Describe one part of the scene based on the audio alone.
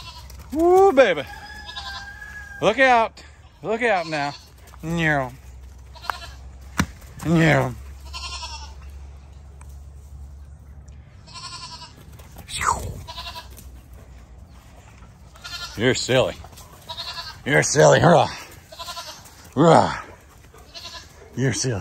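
A dog runs through dry leaves, which rustle under its paws.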